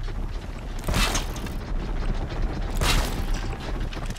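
A bow twangs as arrows are shot.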